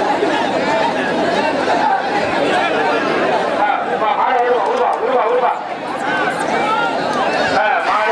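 A large crowd of men shouts and cheers loudly outdoors.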